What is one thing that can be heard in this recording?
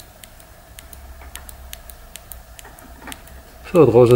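A flashlight switch clicks.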